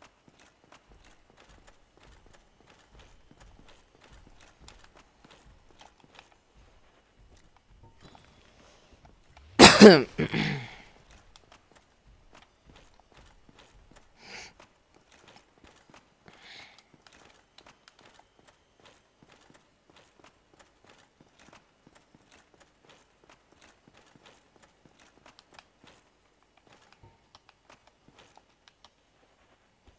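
Armoured footsteps crunch on hard ground.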